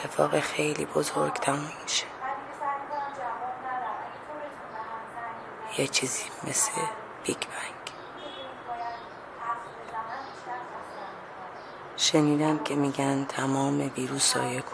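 A middle-aged woman speaks calmly and softly, close by.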